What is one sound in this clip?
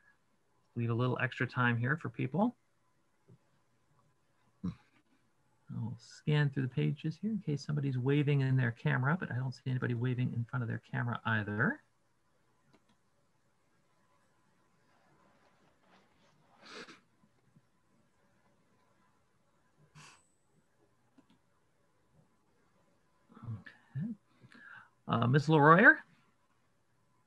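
A middle-aged man speaks calmly over an online call, in bursts with pauses.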